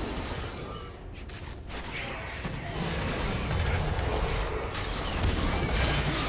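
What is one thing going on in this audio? Spell effects whoosh and crackle during a fast fight.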